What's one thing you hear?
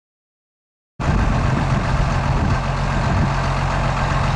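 A diesel tractor engine idles with a steady low rumble.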